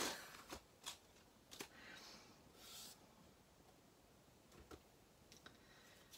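A thin metal plate scrapes and rustles across a mat.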